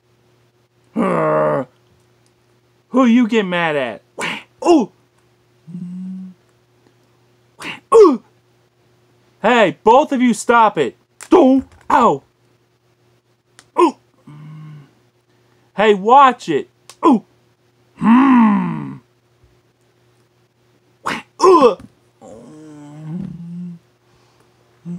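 A man speaks close by in playful, changing voices.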